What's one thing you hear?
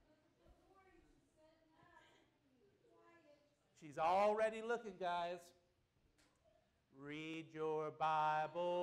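A man speaks through a microphone, loudly at times.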